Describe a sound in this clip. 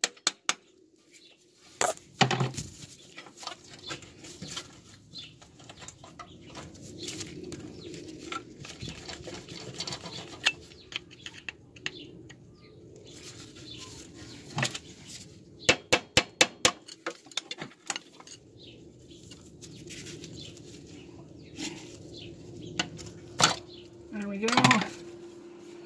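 A metal tool knocks and clanks against metal parts.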